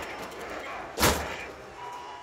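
A punching bag is struck with a single hard thump.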